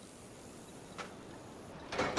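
A metal lever clunks as it is pulled.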